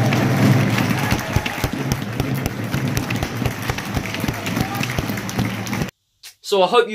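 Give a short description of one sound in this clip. A spectator claps hands close by.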